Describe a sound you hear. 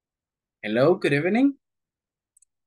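A young man speaks briefly and warmly over an online call.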